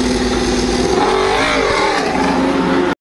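A racing motorcycle accelerates away with a rising roar.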